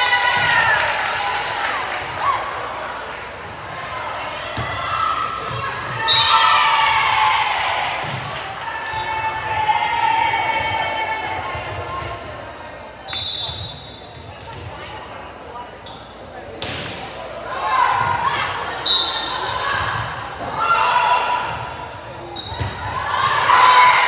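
Young women call out and cheer across a large echoing gym.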